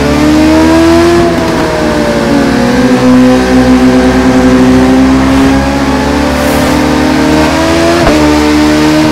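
A motorcycle engine roars steadily, its pitch rising and falling as it revs and shifts gears.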